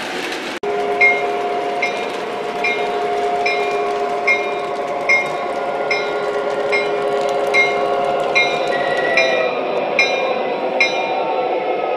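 A model locomotive's bell rings steadily.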